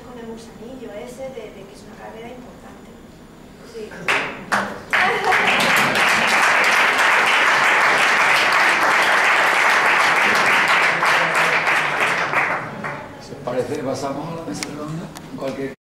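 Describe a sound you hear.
A woman speaks calmly to an audience in a hall.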